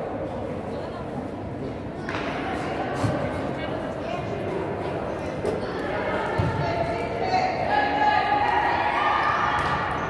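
Spectators murmur and call out in the echoing hall.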